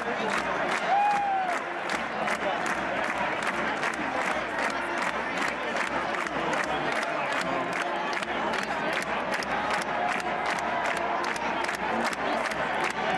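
A large stadium crowd cheers and roars loudly throughout.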